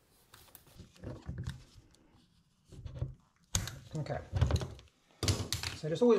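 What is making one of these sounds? Plastic cables rustle and scrape as they are pushed through a hole in a wall.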